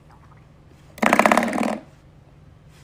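A duck quacks.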